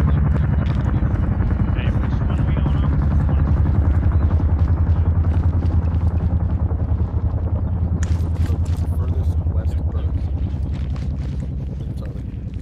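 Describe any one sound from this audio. Boots thud quickly on hard ground as soldiers run.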